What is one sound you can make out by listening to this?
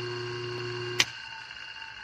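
A circuit breaker trips with a sharp click.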